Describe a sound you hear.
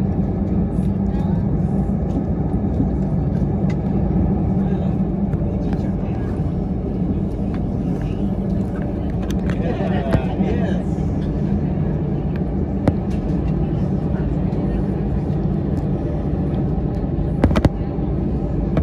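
A jet airliner's engines rumble steadily as the plane taxis.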